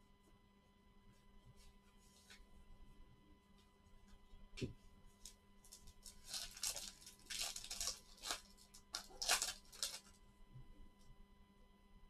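Card packs tap and click against each other.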